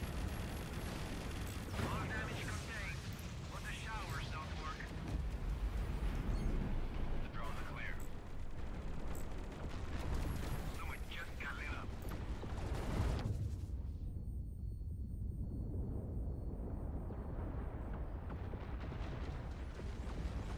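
Laser cannons fire in repeated bursts with deep booming blasts.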